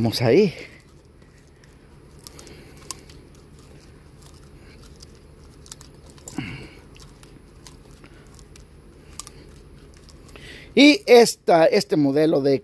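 Plastic parts click and rattle as a trimmer spool is handled.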